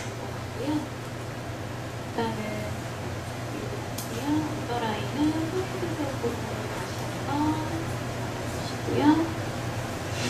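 A woman speaks calmly into a headset microphone, close by.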